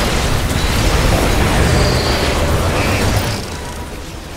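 Explosions rumble deep and loud.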